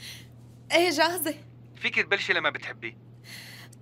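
A young woman speaks and laughs close to a microphone.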